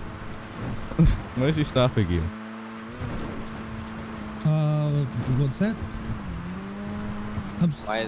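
A car engine drones steadily as the car speeds along.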